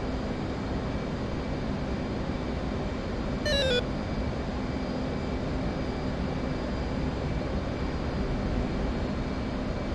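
A jet engine roars with a steady low rumble.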